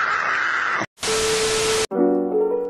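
Loud television static hisses.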